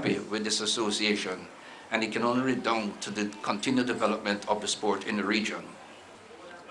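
An elderly man speaks formally into a microphone at a podium.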